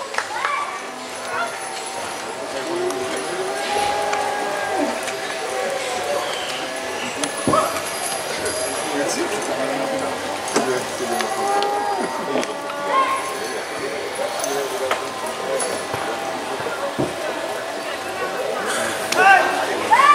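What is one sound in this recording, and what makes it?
Several men talk quietly among themselves outdoors.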